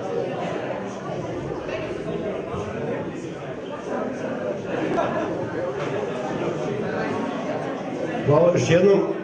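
A woman talks at a distance in an echoing hall.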